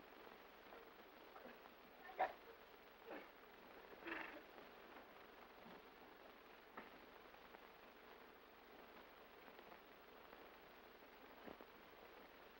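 Bodies thump and scuffle on a sofa.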